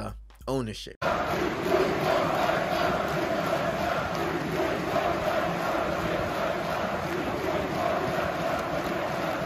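A large stadium crowd sings and chants loudly.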